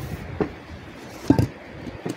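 Sand pours and hisses into a metal box.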